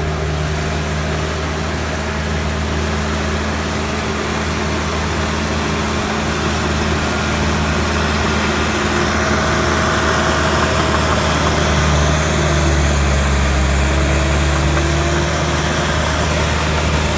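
Soil scrapes and tumbles as a bulldozer blade pushes dirt.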